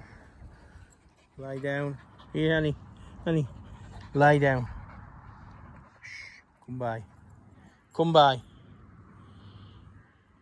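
A dog runs across grass.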